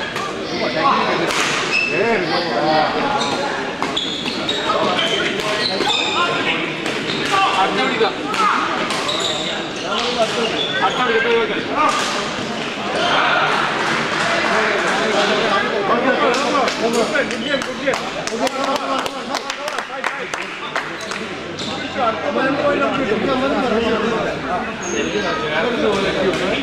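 A crowd chatters steadily in a large echoing hall.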